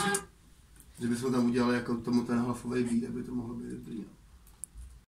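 Electronic music plays through loudspeakers.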